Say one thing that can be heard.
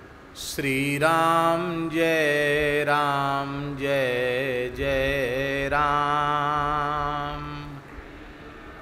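A middle-aged man chants a long, steady held note into a microphone.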